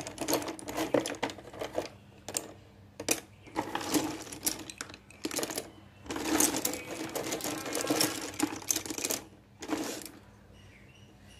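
Wooden sticks clatter and rattle as a hand rummages through a pile of them.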